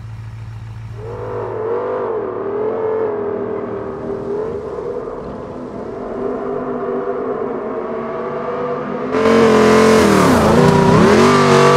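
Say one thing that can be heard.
A small car engine putters and revs.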